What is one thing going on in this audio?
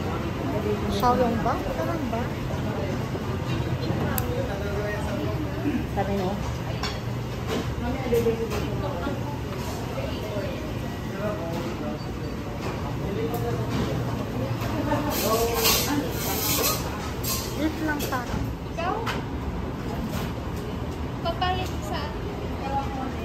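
A busy crowd chatters all around.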